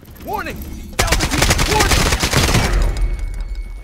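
Rapid gunfire rings out loudly.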